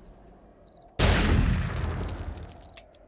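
A gun fires a loud shot that echoes.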